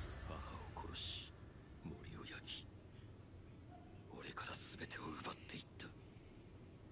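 A man speaks in a low, tense voice.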